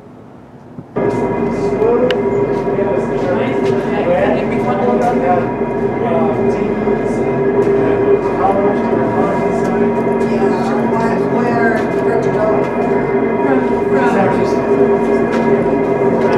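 Incline railway cable-hoist machinery hums steadily.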